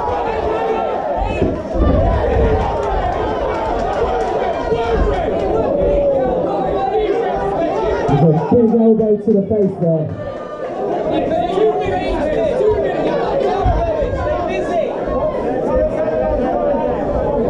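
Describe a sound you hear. A crowd of spectators talks and shouts loudly around a fight.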